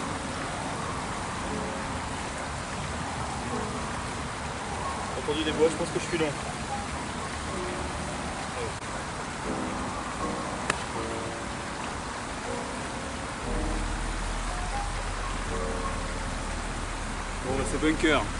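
A man talks casually nearby.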